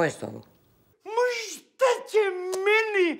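An elderly man shouts with animation.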